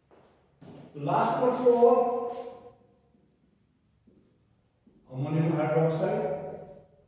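An elderly man speaks in a lecturing tone, close by.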